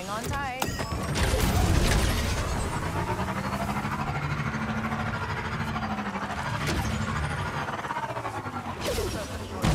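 A motorbike engine starts up and revs steadily.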